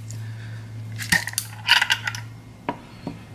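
A lid twists and clicks off a glass jar.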